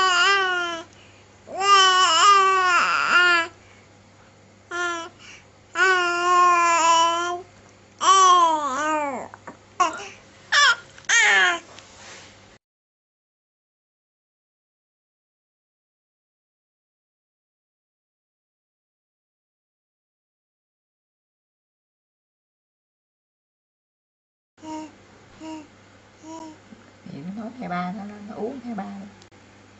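A two-month-old baby coos and babbles close by, in high, gliding vowels.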